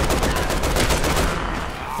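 A burst of fire roars and crackles.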